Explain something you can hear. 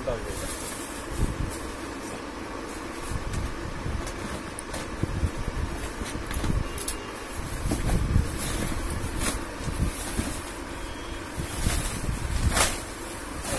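Cardboard boxes knock and scrape as they are moved.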